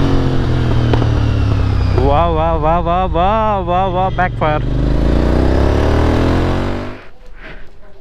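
A motorcycle engine rumbles loudly while riding.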